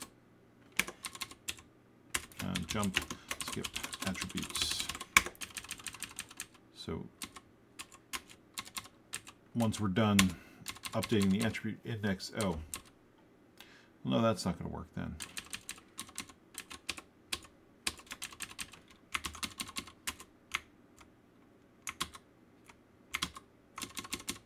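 Computer keys click in quick bursts.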